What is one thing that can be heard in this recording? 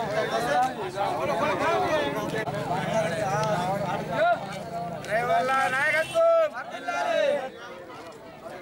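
A man shouts slogans loudly.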